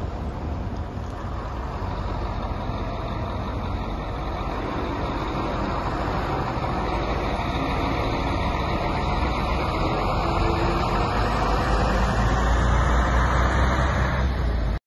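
A bus engine rumbles steadily and grows louder.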